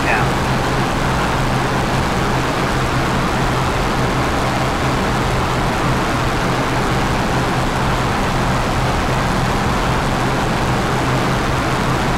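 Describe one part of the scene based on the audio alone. An aircraft engine drones steadily and loudly.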